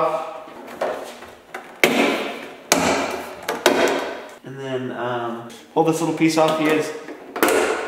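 Plastic trim clicks and knocks against a metal door.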